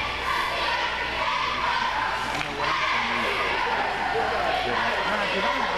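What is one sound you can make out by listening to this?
A crowd of spectators murmurs and chatters, echoing in a large indoor hall.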